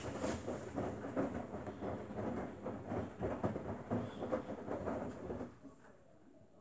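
A front-loading washing machine drum tumbles wet laundry with sloshing thumps.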